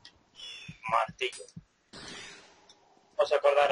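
Short menu blips click in quick succession.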